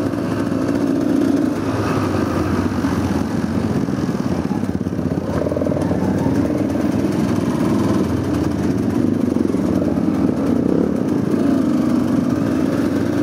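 A dirt bike engine revs and rumbles up close.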